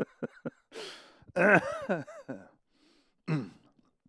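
A man laughs into a close microphone.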